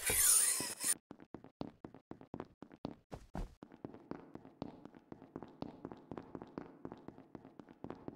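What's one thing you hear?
Small footsteps patter quickly and steadily.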